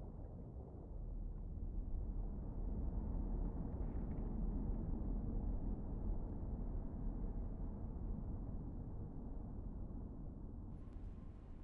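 A submarine rumbles low and deep as it glides past.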